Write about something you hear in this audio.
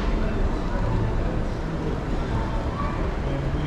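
An escalator hums steadily nearby.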